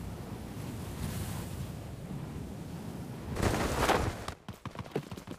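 Wind rushes loudly past a falling parachutist.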